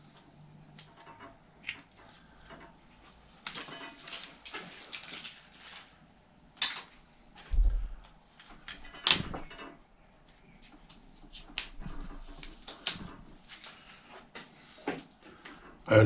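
Metal parts click and clink as a brake lever is adjusted.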